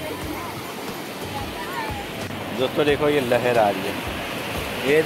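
Small waves wash and fizz onto the shore.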